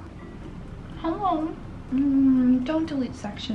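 A young woman speaks close by in a lively, cheerful tone.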